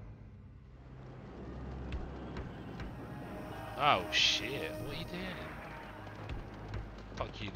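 A computer game's chiming sound effects play.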